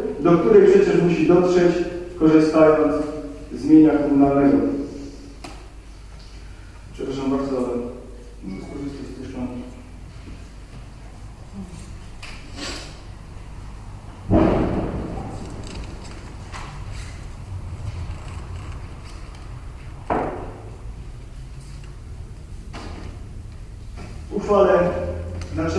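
A middle-aged man speaks calmly into a microphone, pausing now and then.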